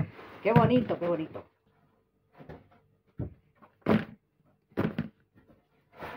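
Pastries drop into a plastic bowl with soft thuds.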